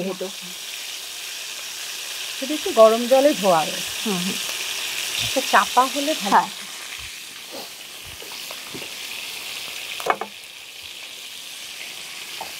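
A spatula scrapes and clanks against a pan.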